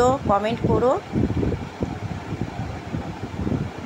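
A woman speaks calmly up close.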